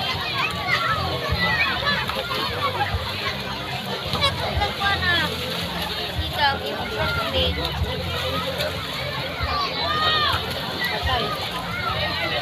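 A crowd of children shout and laugh excitedly outdoors.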